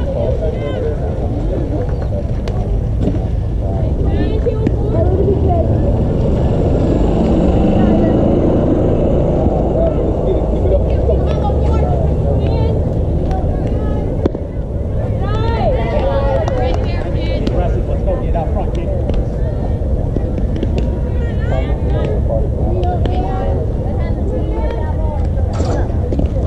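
Young girls shout and cheer nearby outdoors.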